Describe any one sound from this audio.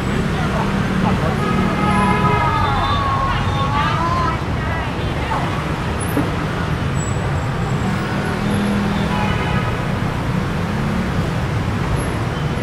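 People talk nearby in a crowd.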